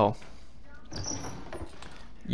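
A wooden drawer slides shut.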